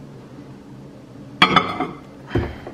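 A ceramic bowl clinks down on a glass plate.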